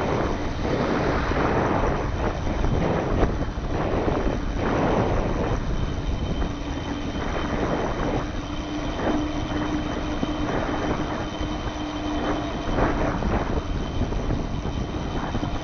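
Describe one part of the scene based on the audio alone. Wind rushes loudly past while riding outdoors.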